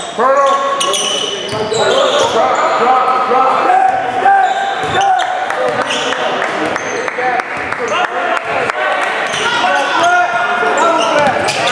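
A basketball thuds as it is dribbled on the court.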